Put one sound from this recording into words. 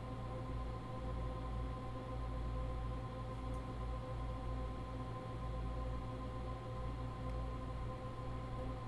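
A train's electric motors hum steadily with a low rumble, heard from inside the cab.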